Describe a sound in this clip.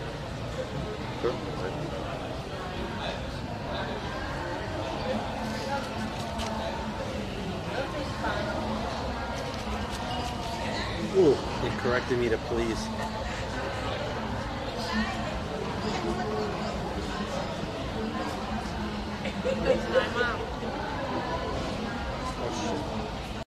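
A crowd murmurs and chatters in the background.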